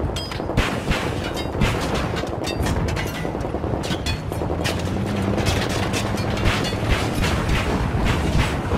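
An armored vehicle's engine rumbles as it drives.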